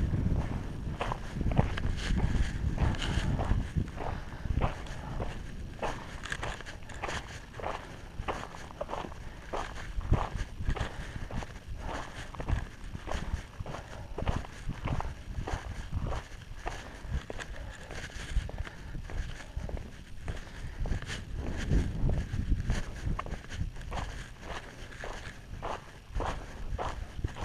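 Footsteps crunch steadily on gravel.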